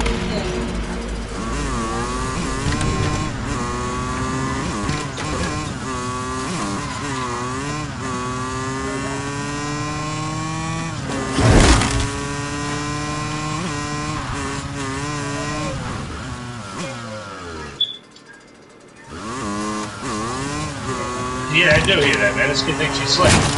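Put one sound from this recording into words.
A motorcycle engine revs and hums, rising and falling in pitch.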